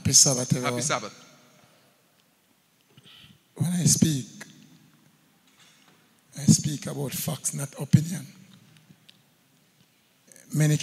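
An elderly man speaks slowly into a microphone, heard through loudspeakers, with pauses between phrases.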